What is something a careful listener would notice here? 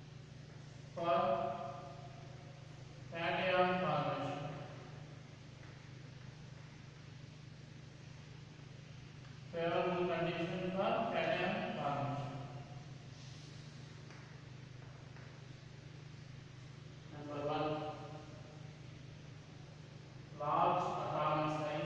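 A man speaks calmly in short bursts, with pauses.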